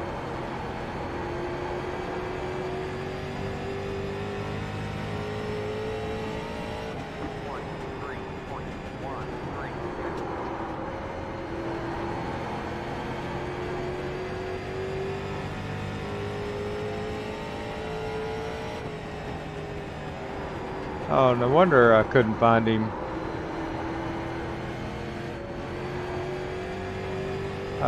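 A race car engine drones steadily, its pitch rising and falling with speed.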